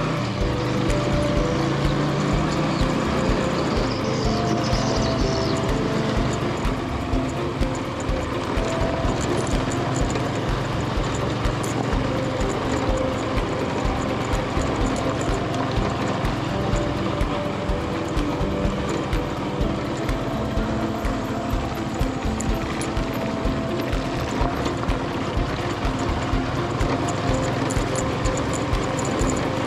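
Tyres crunch and rattle over a rough dirt road.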